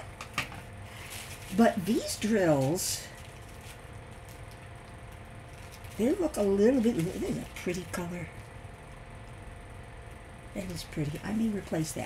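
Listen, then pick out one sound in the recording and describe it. Plastic bags of beads rustle and crinkle as hands handle them.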